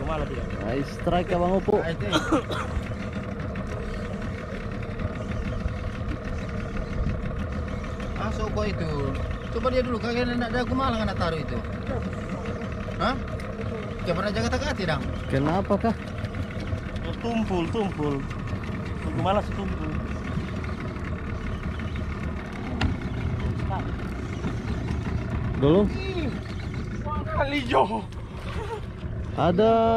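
A boat engine hums steadily nearby.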